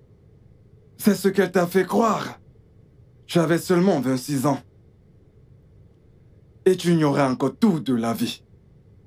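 A man speaks calmly and earnestly up close.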